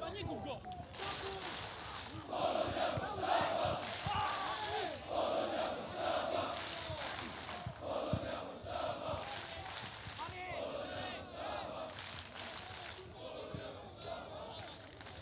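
A crowd cheers and chants loudly in an open stadium.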